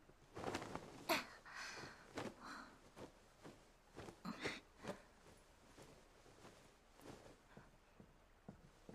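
A heavy blanket rustles as it is tucked and smoothed.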